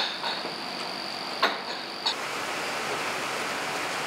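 A heavy metal door slides open with a grinding scrape.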